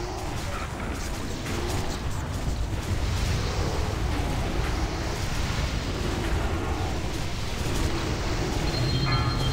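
Spells crackle and blast in a raging game battle.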